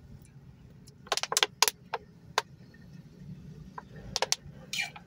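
A woman gulps water from a plastic bottle.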